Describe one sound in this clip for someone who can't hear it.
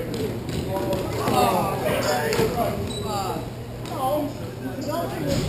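Young players shout and call out to each other across an echoing hall.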